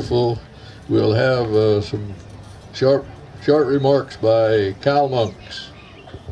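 An elderly man speaks into a microphone, heard through a loudspeaker.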